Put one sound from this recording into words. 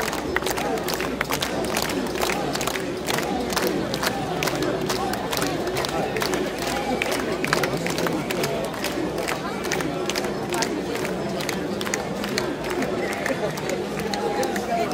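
Hands clap sharply in a crowd.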